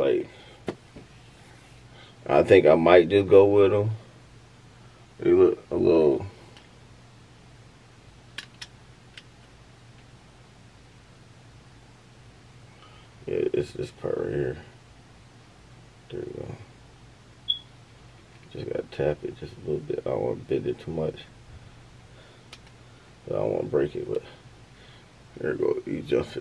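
A man talks close by, calmly and in bursts.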